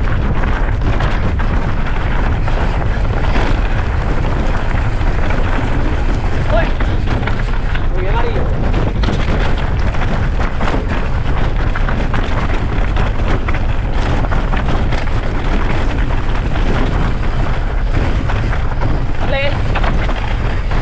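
Bicycle tyres rattle and crunch over loose stones.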